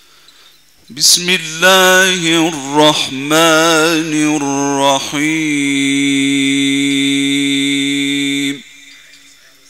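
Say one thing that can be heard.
A man chants through a microphone in a long, drawn-out melodic voice.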